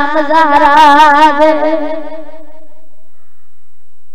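A boy sings a long, wavering note loudly into a microphone, then fades out with a ringing echo.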